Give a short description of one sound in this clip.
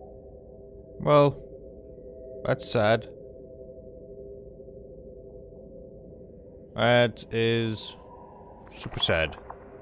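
A huge sea creature lets out loud, wavering, whale-like calls.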